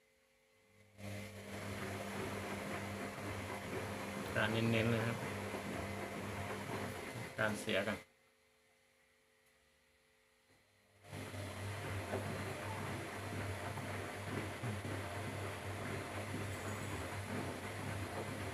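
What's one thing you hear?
A washing machine hums and rumbles steadily as its drum turns.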